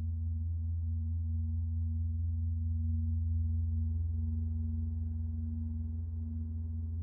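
A synthesizer plays a deep, steady droning bass tone.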